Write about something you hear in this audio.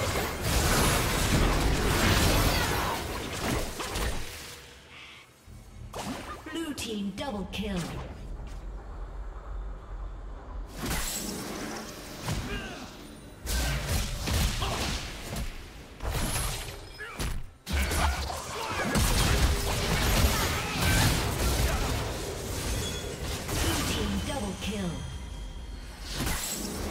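Magic blasts and crackles burst in a video game battle.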